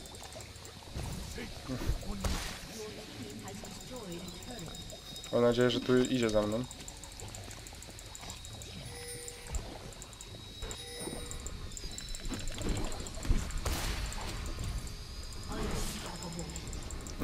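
Fantasy game spell effects whoosh and crackle.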